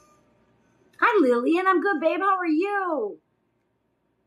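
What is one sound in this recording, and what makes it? A middle-aged woman exclaims in a high, sing-song voice.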